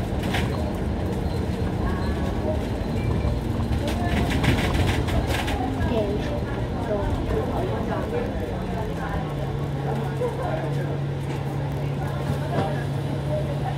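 A bus engine rumbles steadily close by, its hum dropping in pitch partway through.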